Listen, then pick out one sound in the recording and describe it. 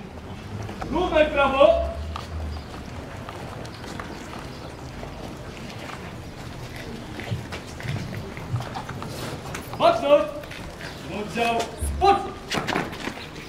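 Men talk briefly nearby, outdoors.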